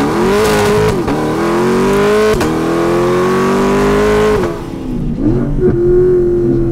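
Exhaust pops and crackles between gear shifts.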